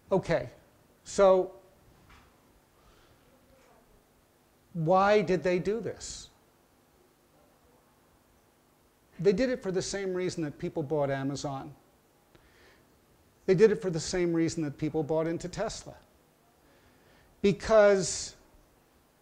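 An elderly man speaks calmly into a close microphone, in short phrases with pauses.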